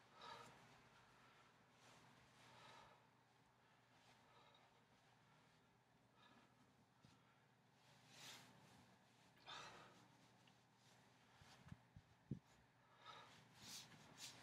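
A towel swishes and flaps through the air.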